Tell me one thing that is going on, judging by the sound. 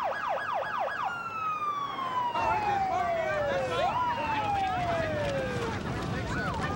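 A siren wails and falls in pitch.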